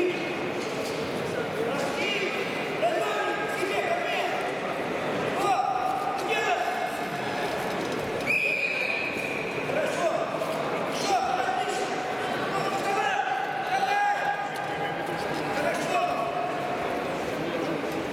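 A crowd of spectators murmurs and shouts in a large echoing hall.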